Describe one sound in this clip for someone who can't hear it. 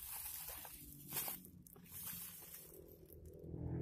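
Plastic wrapping crinkles and rustles as hands handle it.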